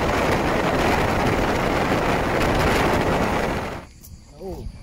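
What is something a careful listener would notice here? Wind roars loudly past a moving motorcycle.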